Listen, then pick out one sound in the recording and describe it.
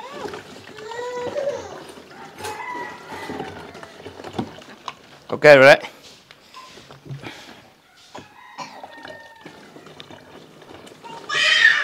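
Liquid pours and splashes into a plastic container.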